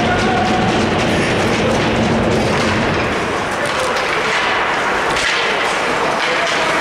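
Ice skates scrape and glide across the ice.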